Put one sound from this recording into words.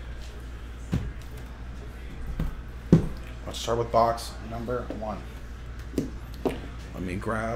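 Hands tap and handle a plastic case on a table.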